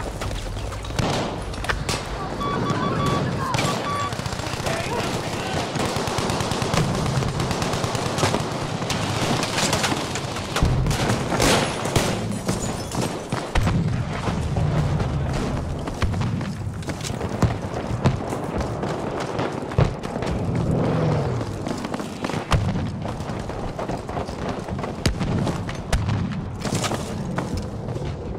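Gunfire and explosions crack and boom throughout.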